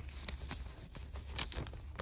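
Paper banknotes riffle and flick through fingers.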